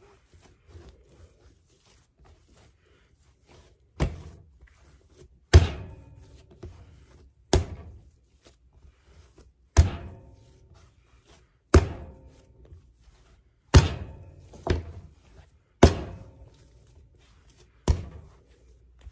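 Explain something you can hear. Hands knead and squish soft dough.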